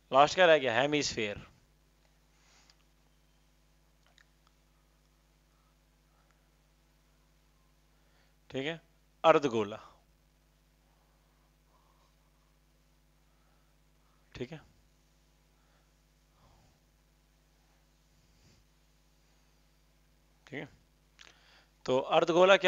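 A man speaks in short bursts, calmly explaining, close by.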